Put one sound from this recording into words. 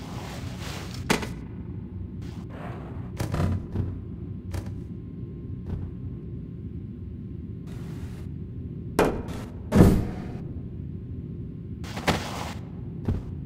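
A futuristic gun zaps and crackles in short bursts.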